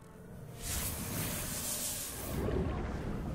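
An explosion booms with a roaring blast.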